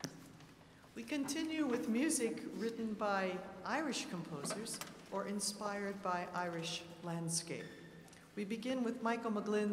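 A choir sings.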